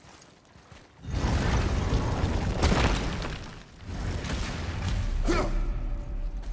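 Heavy stone doors grind and rumble open.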